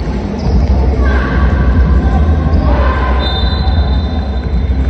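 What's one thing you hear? Sneakers squeak sharply on a hard court in an echoing hall.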